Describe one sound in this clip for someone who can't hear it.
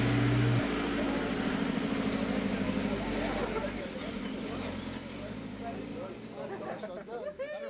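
A truck engine rumbles as the truck drives slowly away.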